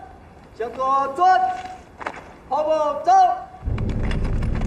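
A man shouts commands loudly outdoors.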